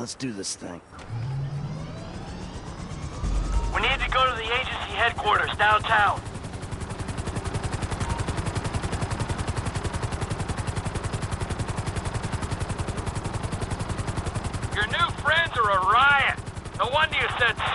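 A helicopter rotor thumps rapidly and steadily.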